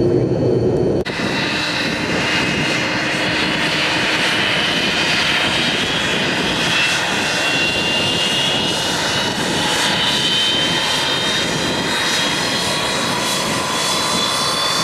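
A jet airliner's engines whine loudly as it taxis closer.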